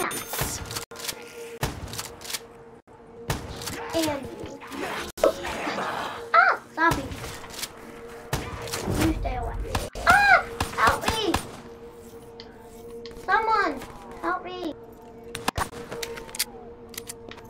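Gunshots crack from a video game.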